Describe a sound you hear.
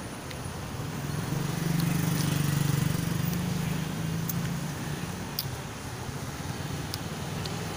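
A motorcycle engine rumbles close by as the motorcycle passes.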